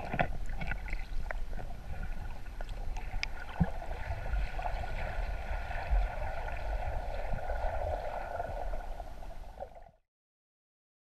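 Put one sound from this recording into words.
Water gurgles and rumbles in a muffled way, as heard underwater.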